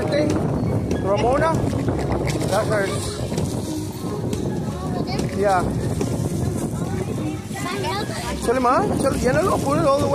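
Young children shout and chatter excitedly outdoors.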